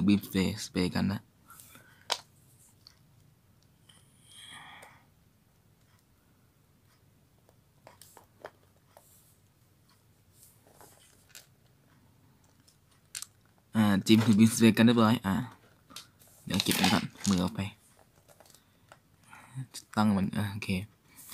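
Small plastic parts click softly as hands move a toy figure.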